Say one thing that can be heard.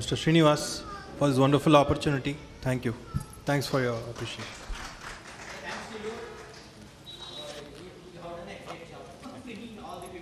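A man speaks into a microphone in a calm, friendly voice.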